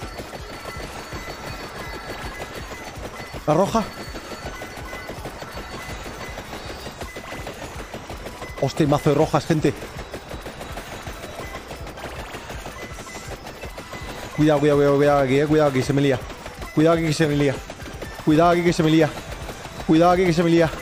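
Video game sound effects crackle and chime steadily.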